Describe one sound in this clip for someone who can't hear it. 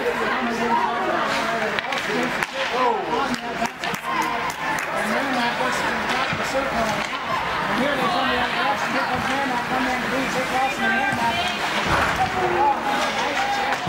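Spectators talk and call out nearby in an echoing rink.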